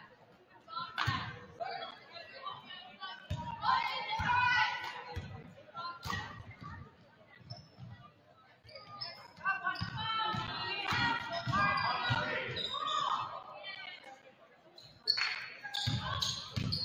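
A basketball bounces on a hard wooden floor in a large echoing gym.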